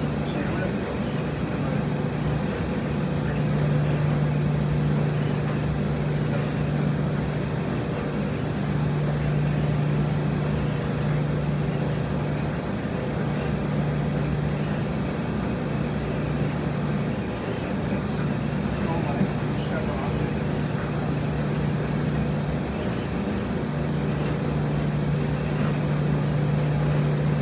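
Laundry is loaded into a front-loading washer.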